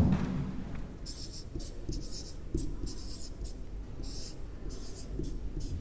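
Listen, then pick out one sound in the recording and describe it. A marker squeaks across a whiteboard.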